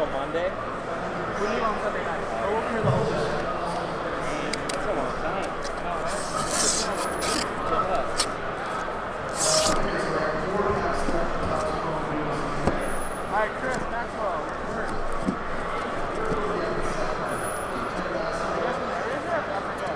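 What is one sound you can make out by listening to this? Cardboard scrapes and rustles as a box is handled.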